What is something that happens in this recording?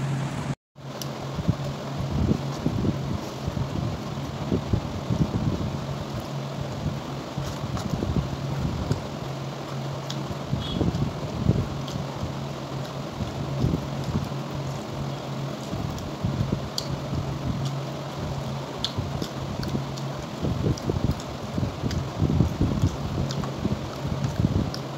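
Fingers squish and mix wet rice.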